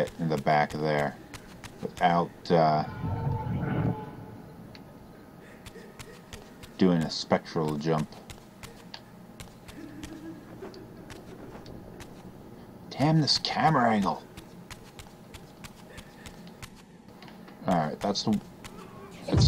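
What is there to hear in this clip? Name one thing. Footsteps patter quickly across a stone floor.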